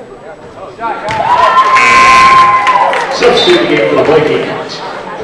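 A crowd of spectators cheers loudly in an echoing gym.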